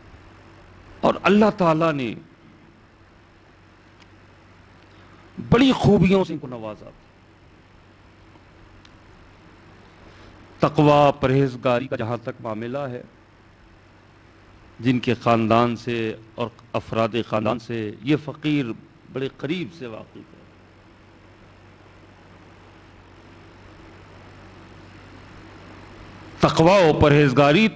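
A middle-aged man speaks with emphasis into a microphone, in bursts with long pauses.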